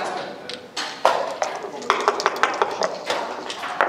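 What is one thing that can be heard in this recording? Dice tumble and clatter onto a board.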